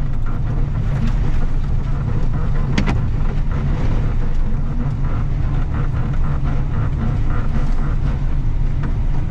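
A heavy diesel engine rumbles steadily close by.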